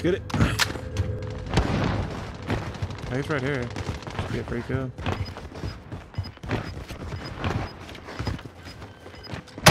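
Footsteps thud quickly on hard ground while running.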